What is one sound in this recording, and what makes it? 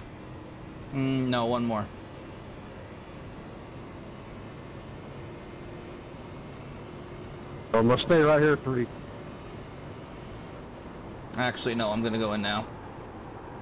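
A man speaks in short bursts into a headset microphone.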